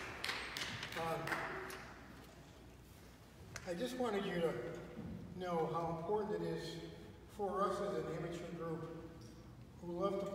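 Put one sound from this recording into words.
An older man speaks calmly to an audience.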